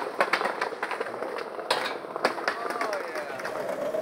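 A skateboard clatters onto pavement.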